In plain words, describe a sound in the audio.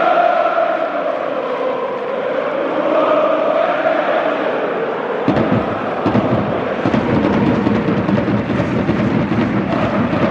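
A huge stadium crowd sings and chants loudly in unison.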